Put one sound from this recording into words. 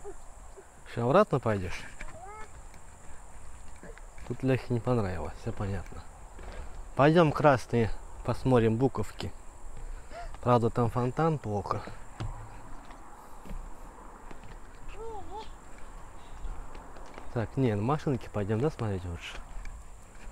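A young child babbles and calls out nearby.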